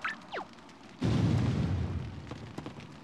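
A soft whooshing burst plays as a painting changes.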